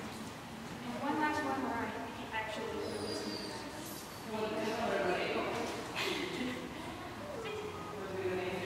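A woman talks with animation nearby.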